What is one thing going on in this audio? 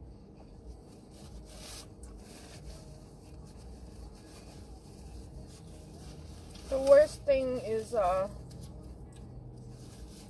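A paper plate rustles as hands handle it.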